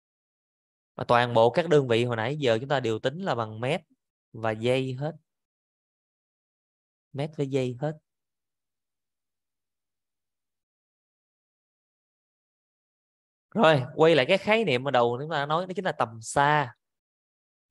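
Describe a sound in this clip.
A woman speaks calmly into a microphone, heard as if through an online call, in short bursts with pauses.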